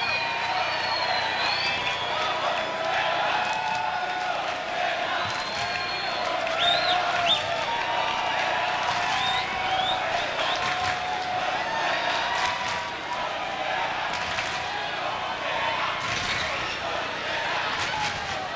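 A large crowd cheers and whistles loudly in a big echoing hall.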